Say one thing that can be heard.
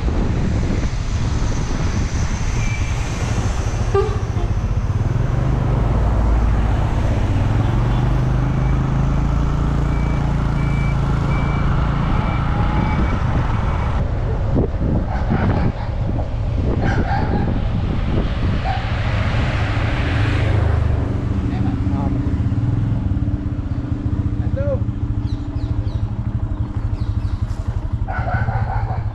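A motorbike engine hums steadily close by as it rides along.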